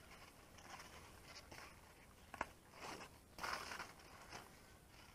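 Leaves rustle as hands push through plants.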